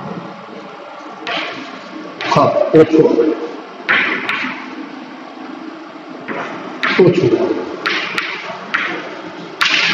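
Chalk taps and scrapes on a board.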